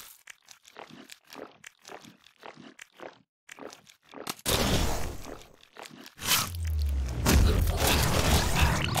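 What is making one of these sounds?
Rapid shooting effects from a game fire in quick bursts.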